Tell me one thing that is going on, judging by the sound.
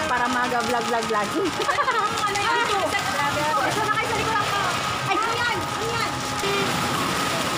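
Young women talk and laugh with animation close to a phone microphone.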